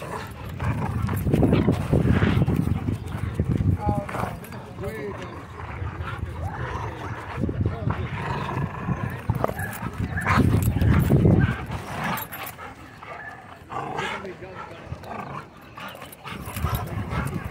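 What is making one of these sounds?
A dog growls close by while tugging on a rope toy.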